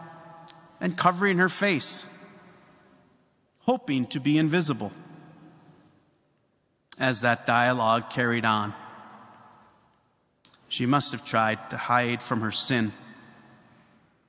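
A man speaks in measured phrases through a microphone, echoing in a large hall.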